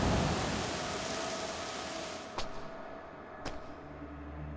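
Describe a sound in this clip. A metal device clatters onto a stone floor.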